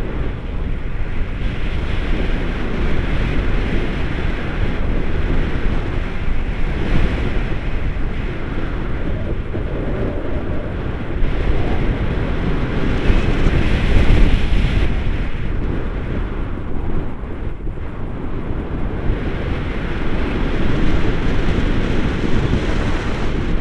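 Strong wind rushes and buffets loudly against a microphone.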